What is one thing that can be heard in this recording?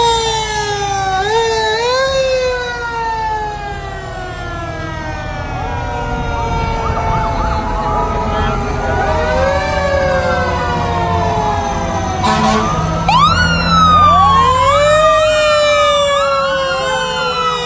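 Fire truck sirens wail and rise and fall in pitch.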